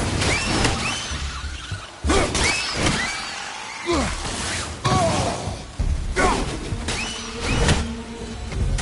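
A heavy axe whooshes and strikes with loud thuds.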